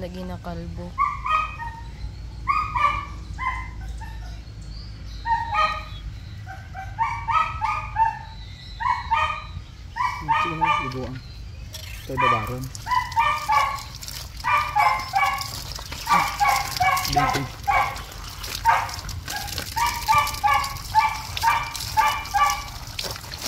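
A puppy whimpers and squeaks.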